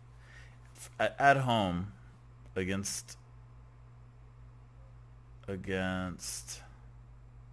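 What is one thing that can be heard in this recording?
A man speaks calmly and closely into a microphone, in short phrases.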